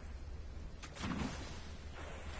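A vehicle crashes down onto the ground with a heavy thud.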